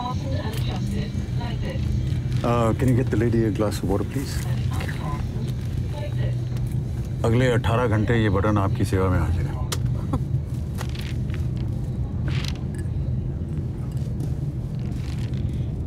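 A plane's engines drone steadily in the cabin.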